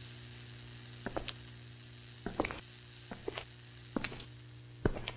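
A young man speaks quietly into a microphone.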